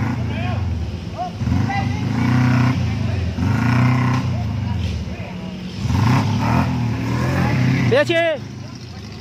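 An off-road jeep's engine revs hard under load as it climbs a muddy slope.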